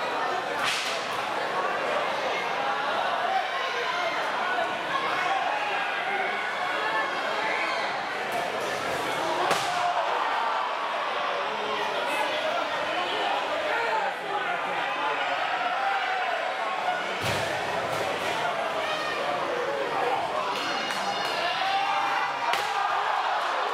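A crowd chatters and cheers in a large echoing hall.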